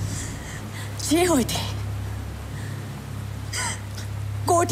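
A second young woman answers quietly, close by.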